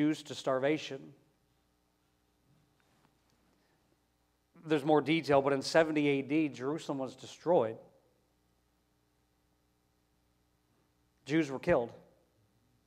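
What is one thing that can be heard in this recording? A man speaks slowly and earnestly into a microphone, with long pauses.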